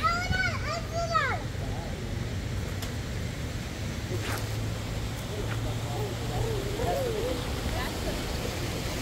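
A young girl calls out in a high voice nearby.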